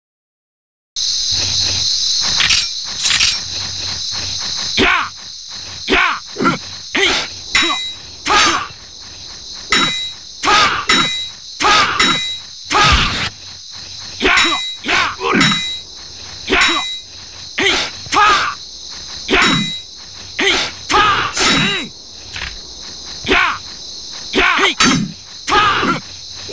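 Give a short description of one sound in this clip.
Swords whoosh through the air in quick swings.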